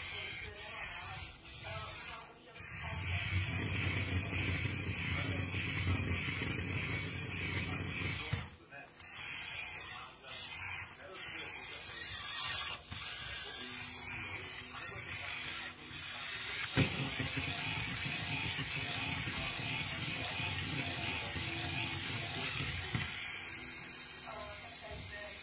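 A small robot's motor whirs as it rolls across a hard floor close by.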